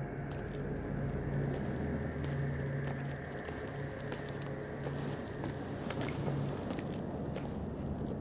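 Footsteps crunch on a debris-strewn floor.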